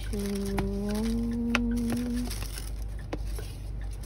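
A ribbon rustles as it is untied from a cardboard box.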